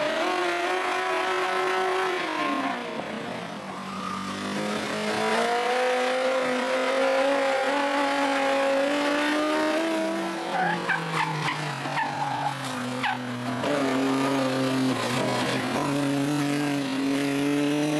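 A racing car engine roars and revs close by.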